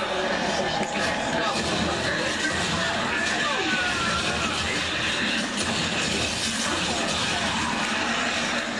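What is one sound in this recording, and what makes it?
Gunfire and explosions from a video game play through a television speaker.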